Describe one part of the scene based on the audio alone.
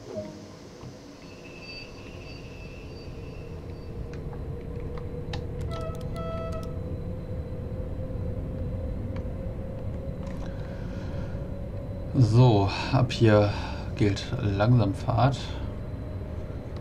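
An electric multiple unit pulls away, its traction motors whining as it gathers speed along the rails.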